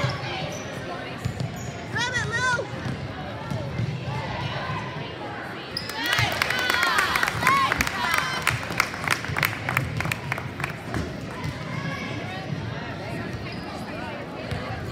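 Children shout and cheer in a large echoing gym.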